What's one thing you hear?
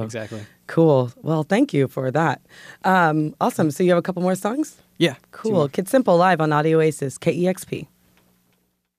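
A woman speaks calmly and closely into a microphone.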